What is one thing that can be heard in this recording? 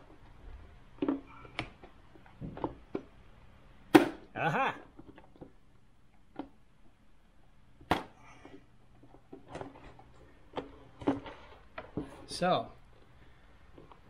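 Plastic panels click and knock as hands handle them.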